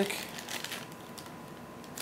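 Plastic wrapping rustles and crinkles.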